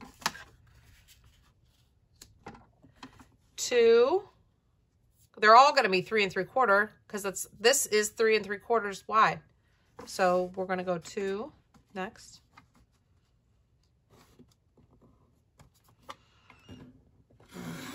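Paper rustles and slides softly under hands.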